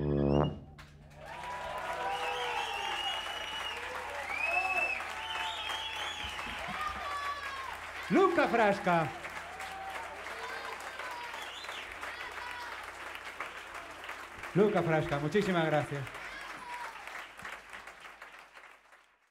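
An audience cheers and applauds.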